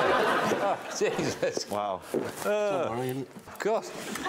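A man laughs heartily, close by.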